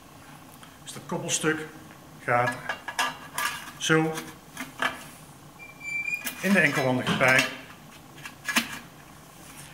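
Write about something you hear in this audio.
A man talks calmly and explains, close by.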